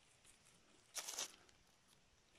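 Dry leaves rustle briefly as a mushroom is pulled from the ground.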